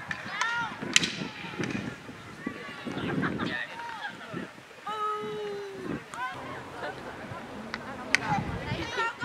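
A hockey stick cracks against a ball.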